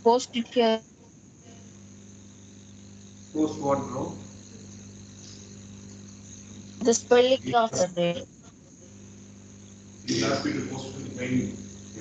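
A man speaks in short bursts, heard through a video call microphone.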